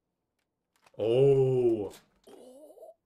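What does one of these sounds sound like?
A young man exclaims loudly in surprise, close to a microphone.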